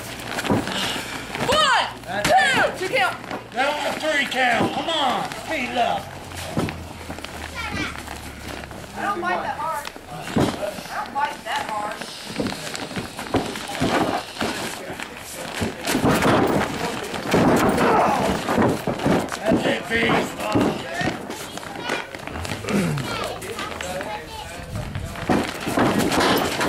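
Bodies thud and slap against a mat.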